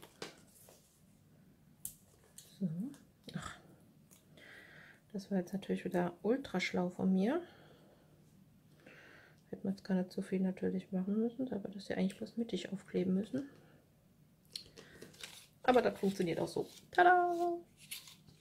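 Paper rustles and crinkles as hands handle a card.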